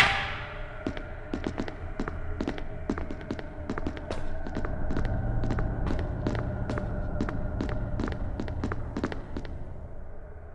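Footsteps clatter on a metal floor.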